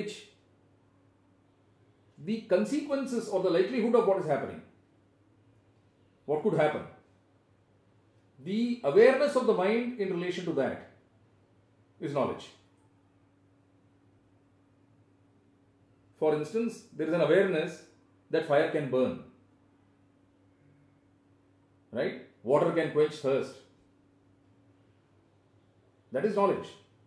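An elderly man speaks calmly and earnestly, close by, with pauses.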